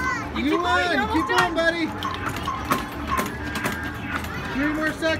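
An arcade game plays bright electronic tunes and sound effects.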